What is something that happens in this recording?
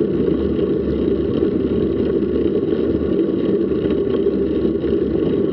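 Wind rushes loudly and steadily past a moving bicycle outdoors.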